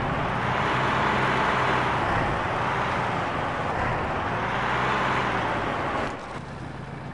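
A heavy diesel engine revs loudly, rising and falling.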